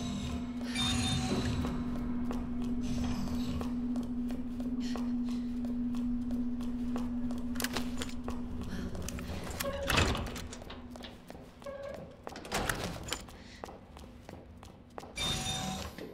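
Footsteps walk steadily along a hard floor.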